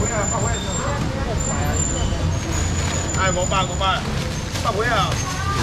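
Men and women chatter nearby in a crowd.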